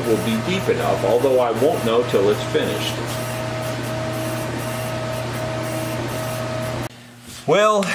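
A laser engraving machine hums steadily with a faint whine.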